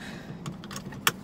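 A seatbelt buckle clicks shut.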